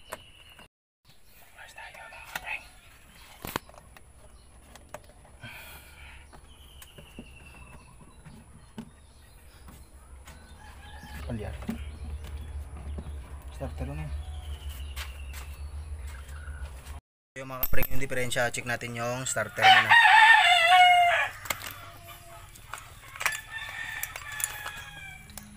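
Metal engine parts click and knock as they are handled.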